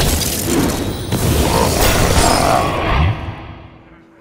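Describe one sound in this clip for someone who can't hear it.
A game card lands on the board with a loud magical whoosh and thud.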